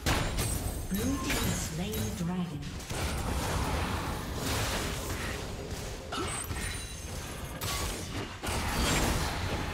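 Fantasy battle sound effects of spells blasting and weapons striking play rapidly.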